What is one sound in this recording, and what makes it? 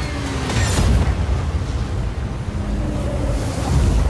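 A heavy armoured truck's engine rumbles as it drives.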